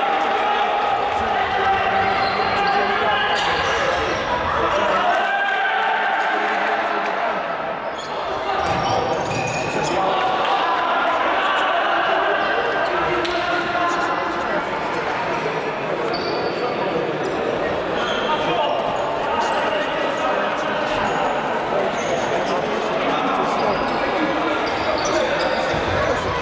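A ball thuds off players' feet.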